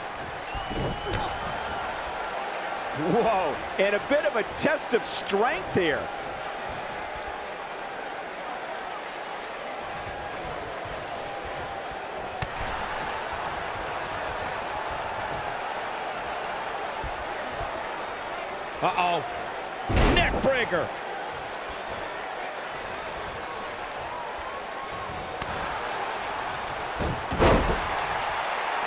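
Heavy blows thud against bodies in a wrestling ring.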